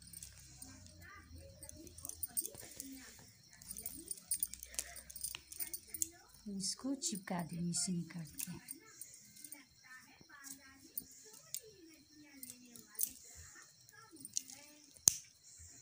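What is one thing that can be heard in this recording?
Plastic beads click faintly against each other.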